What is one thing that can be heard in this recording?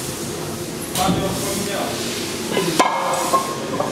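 Metal parts clank and knock close by.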